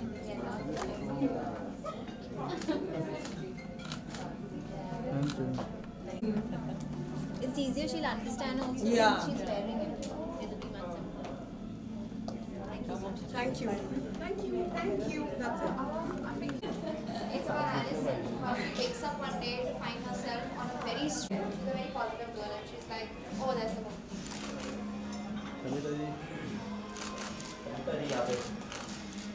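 Women chat and laugh nearby.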